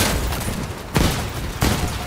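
Shells explode with booming blasts.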